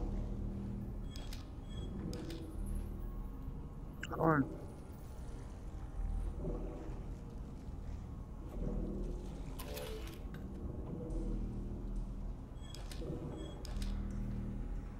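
A pistol clicks and clacks as it is handled and reloaded.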